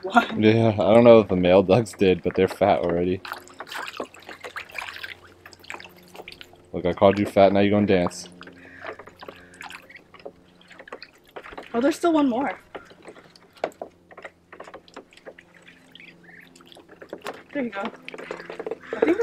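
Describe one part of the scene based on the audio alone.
Ducks splash and paddle in shallow water.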